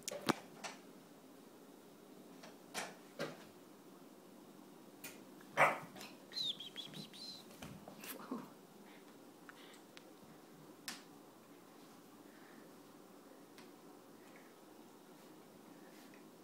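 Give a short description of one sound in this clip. Small dogs play and tussle on a hard floor.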